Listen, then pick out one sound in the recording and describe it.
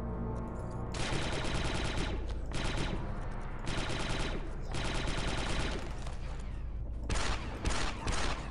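A blaster rifle fires rapid, buzzing bursts of shots.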